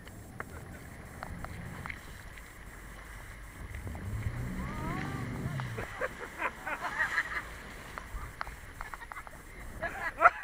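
Water splashes and churns against a boat's hull.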